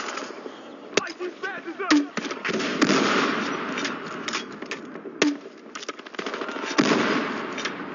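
A shotgun fires loud blasts a few times.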